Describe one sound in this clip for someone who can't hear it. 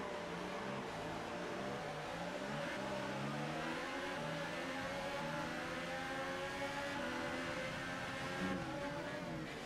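Other racing cars' engines whine close by.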